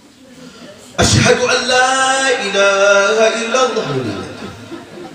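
A middle-aged man chants in a long, drawn-out voice through a microphone, with a slight echo.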